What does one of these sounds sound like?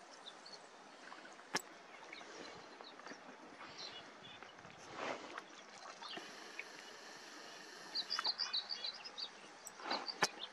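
Small waves lap gently against a shore.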